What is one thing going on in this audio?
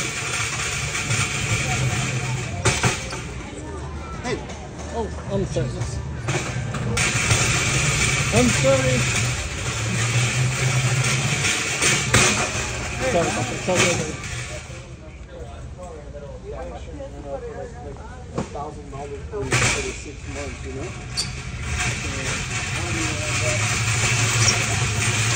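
A metal flatbed cart rattles as it rolls across a hard floor.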